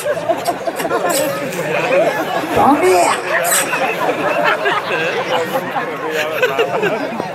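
A young man sings loudly into a microphone through loudspeakers.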